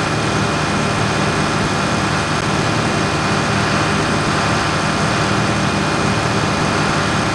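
A diesel tractor engine drones while driving along a road.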